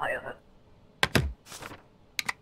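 A rubber stamp thumps down once on paper.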